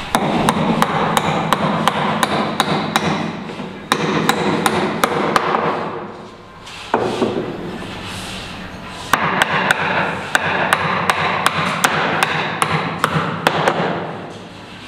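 A hammer taps repeatedly on wood in quick, steady blows.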